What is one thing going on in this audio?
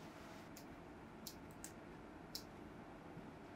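Small scissors snip through flower stems.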